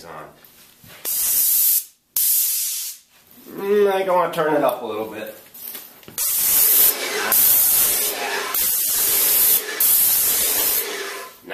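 A paint sprayer hisses in sharp bursts.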